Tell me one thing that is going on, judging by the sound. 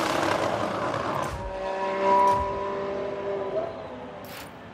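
Several racing car engines whine in the distance.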